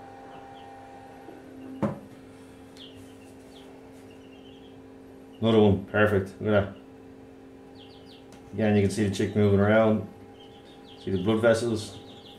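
An incubator hums steadily.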